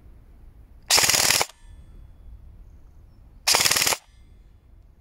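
A rifle fires with a short, sharp burst.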